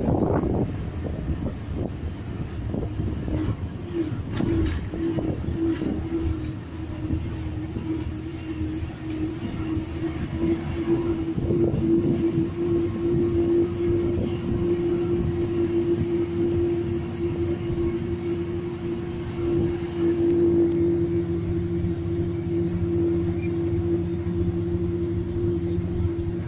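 A bus engine drones steadily while driving along a winding road.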